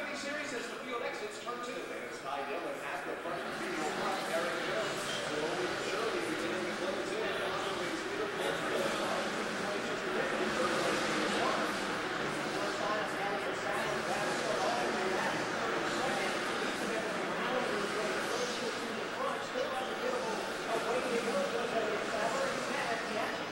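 Race cars roar around a track, heard muffled through glass.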